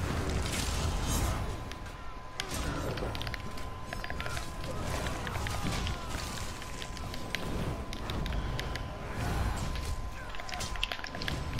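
Swords clash and strike repeatedly in a fight.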